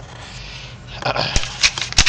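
A sheet of paper rustles and crinkles as a hand handles it.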